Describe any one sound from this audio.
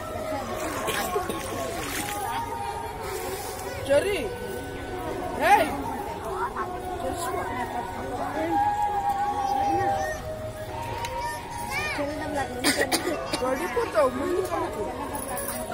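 Children chatter and call out nearby.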